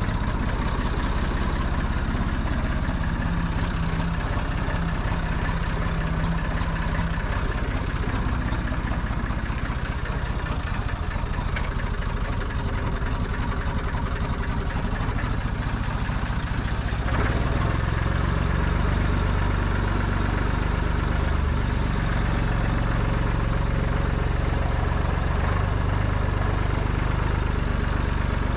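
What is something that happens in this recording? A small tractor's diesel engine chugs steadily close by, growing louder as it drives off around 17 seconds.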